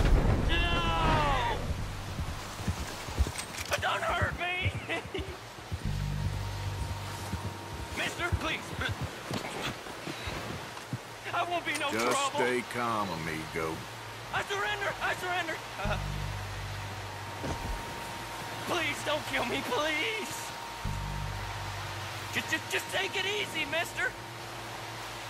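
A man pleads and shouts in fear.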